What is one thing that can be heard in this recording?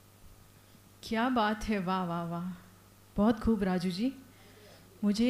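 A woman speaks clearly into a close microphone, reading out with a calm, presenter-like tone.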